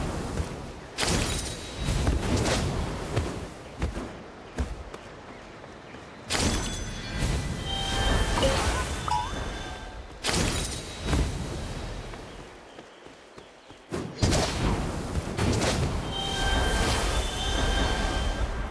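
Magical attacks whoosh and burst with sparkling effects.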